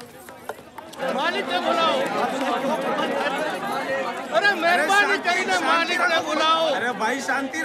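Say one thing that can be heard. A crowd of men and women murmur and chatter.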